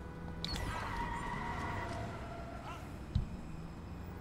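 A heavy truck crashes into a car with a loud bang.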